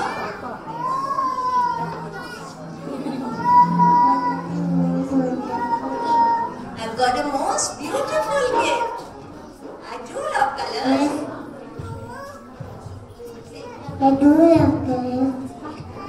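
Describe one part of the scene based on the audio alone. A little girl speaks softly into a microphone.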